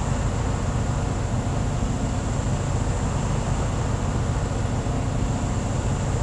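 A truck engine idles with a steady low rumble.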